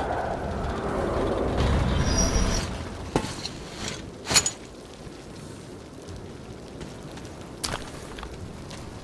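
Footsteps scuff on a gritty floor.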